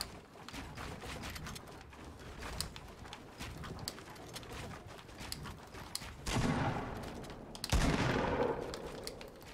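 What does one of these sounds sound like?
Wooden boards clack and knock quickly as structures are built.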